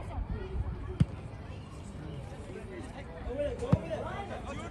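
A soccer ball thuds as it is kicked.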